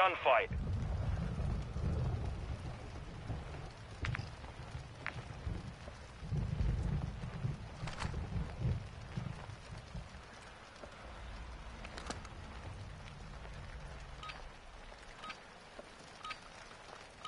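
A deep, rumbling wind roars and swells.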